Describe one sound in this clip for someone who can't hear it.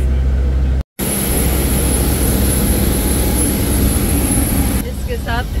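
Aircraft engines roar steadily outdoors, with a high whine.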